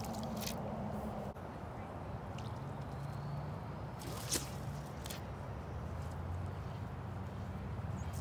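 Water ripples and laps gently outdoors.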